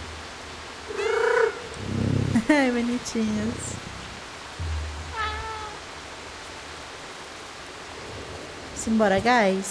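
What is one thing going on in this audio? Cats meow in high, rising and falling cries.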